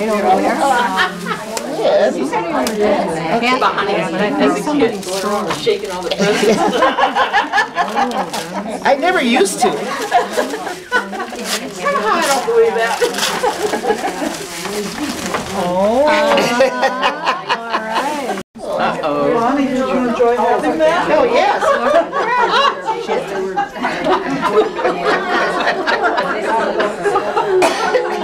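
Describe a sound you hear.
Several women chat and laugh nearby.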